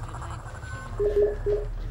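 A control console beeps as buttons are pressed.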